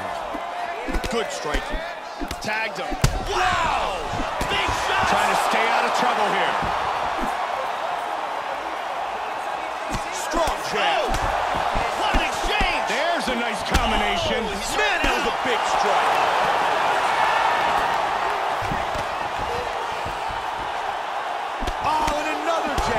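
Punches land with sharp thuds.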